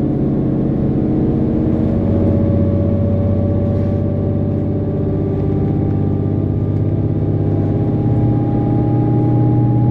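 A train hums and rumbles steadily from inside, its motor slowly rising in pitch.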